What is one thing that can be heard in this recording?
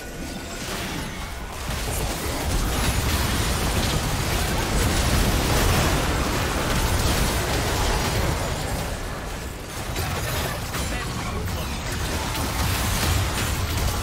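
Spell effects crackle and explode in a fast-paced battle.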